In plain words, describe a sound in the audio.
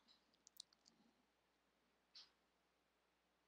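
A paintbrush dabs softly on paper.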